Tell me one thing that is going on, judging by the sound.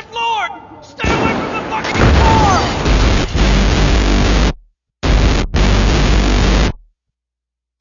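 Loud static hisses and roars.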